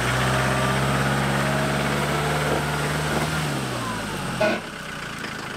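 Tyres crunch over loose stones and gravel.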